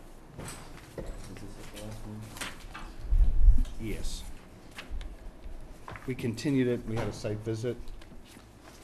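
A man speaks calmly into a microphone in a room with some echo.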